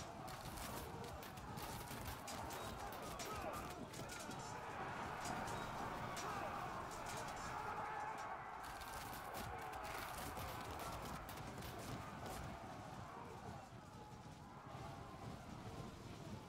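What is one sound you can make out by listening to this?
Battle clamour of clashing weapons and shouting soldiers rises and falls throughout.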